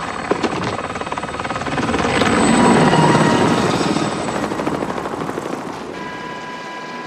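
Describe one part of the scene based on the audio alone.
A helicopter's rotor roars and thumps close by.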